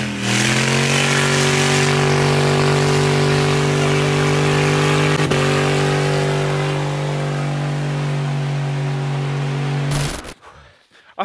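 A car engine roars loudly at high revs.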